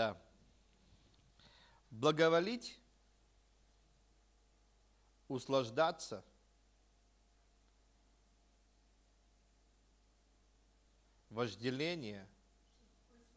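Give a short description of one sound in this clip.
A man speaks slowly into a microphone, with long pauses.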